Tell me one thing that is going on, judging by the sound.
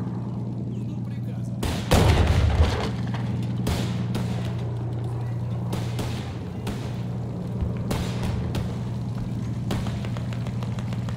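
A tank engine drones steadily.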